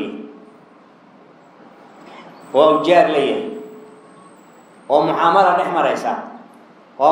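A man preaches with emphasis into a microphone, in short bursts with pauses, his voice echoing slightly.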